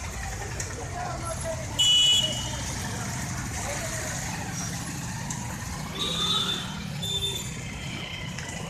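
A crowd of men chants and talks outdoors.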